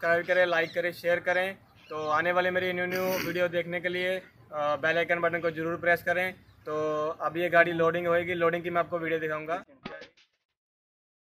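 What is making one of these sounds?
A young man speaks with animation, close to a microphone.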